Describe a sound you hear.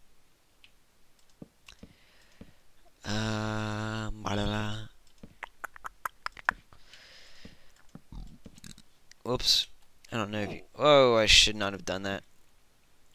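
Wooden blocks knock softly as they are placed one after another.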